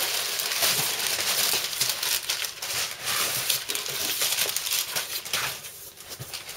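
Packing paper rustles and crinkles loudly.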